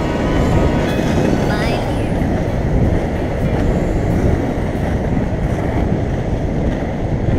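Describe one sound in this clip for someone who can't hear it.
Inline skate wheels roll and rumble on asphalt.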